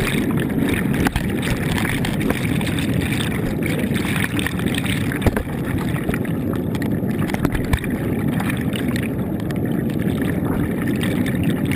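Water bubbles and churns in a muffled, steady rumble underwater.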